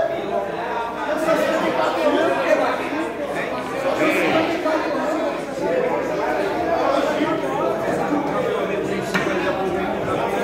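Several men talk and chatter loudly nearby.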